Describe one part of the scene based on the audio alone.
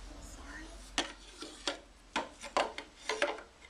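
Wooden pieces knock and clatter against each other.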